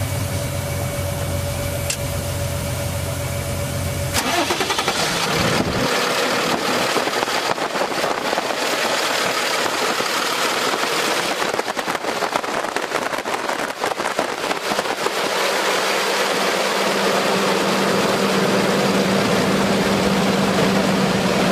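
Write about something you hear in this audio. A car engine idles with a steady rumble.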